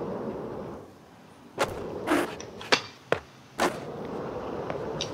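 Skateboard wheels roll and rumble across concrete.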